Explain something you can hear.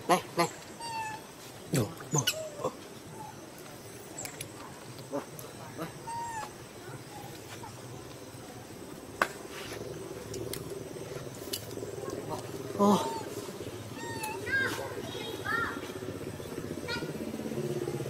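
A young monkey gives short, high chirps now and then.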